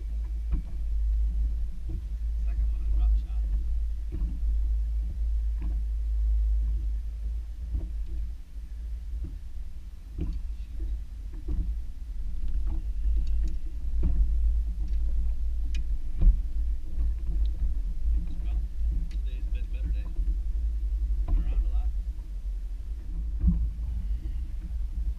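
Water laps against a small boat's hull.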